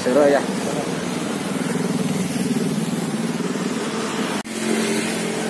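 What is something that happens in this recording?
A motorbike engine hums as it rides by on a road.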